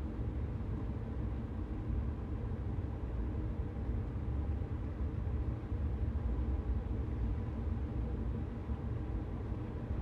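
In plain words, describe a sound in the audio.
A train's motor hums with a steady whine.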